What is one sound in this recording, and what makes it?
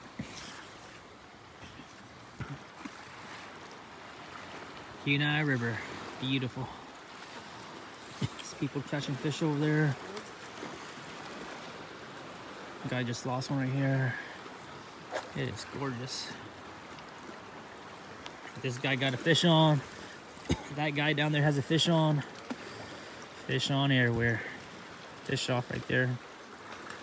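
A wide river rushes steadily.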